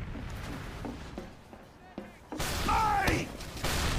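A heavy gun fires in a rapid burst.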